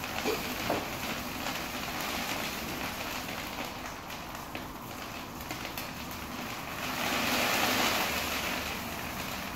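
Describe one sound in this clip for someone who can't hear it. A pneumatic drum lifter hisses with air as it tilts a drum.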